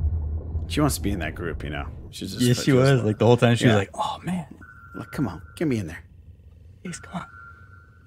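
A man laughs over an online call.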